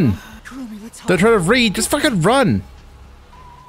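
A young man speaks quietly and urgently.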